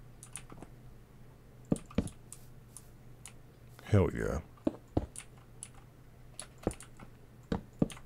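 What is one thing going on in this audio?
Blocks are placed with short, dull knocks.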